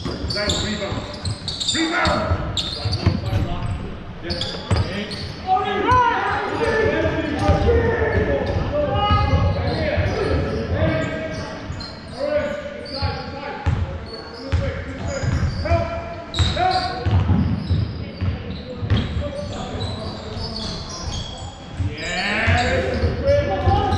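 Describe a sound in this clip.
Players and coaches shout across a large echoing hall.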